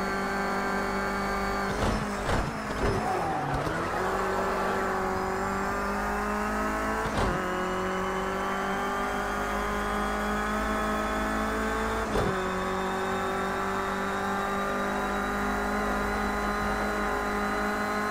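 A car engine roars steadily, dropping in pitch at each gear change and climbing as it speeds up.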